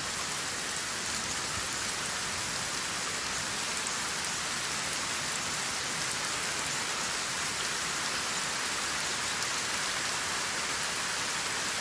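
Steady rain falls and patters on water.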